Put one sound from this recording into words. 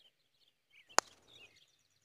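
A golf putter taps a ball with a sharp click.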